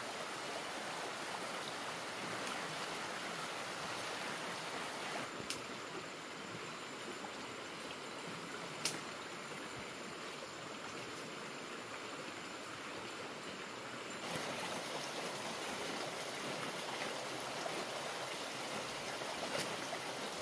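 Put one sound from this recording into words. Leaves rustle in a tree.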